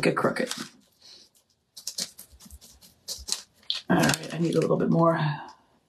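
A woman talks calmly and closely.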